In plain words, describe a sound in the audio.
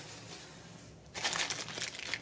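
Paper rustles inside a cardboard box.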